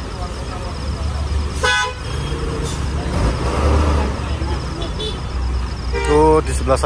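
A bus engine rumbles low as the bus pulls away.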